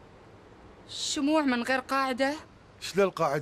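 A middle-aged woman speaks tensely, close by.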